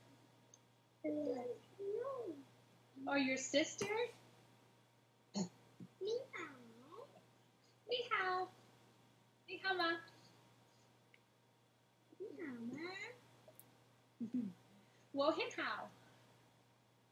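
A young child speaks over an online call.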